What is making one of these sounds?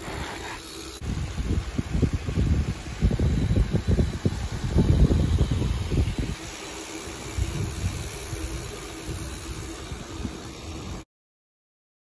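Wind buffets the microphone loudly.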